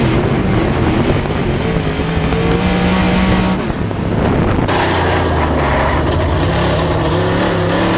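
A race car engine roars loudly at high revs, close by.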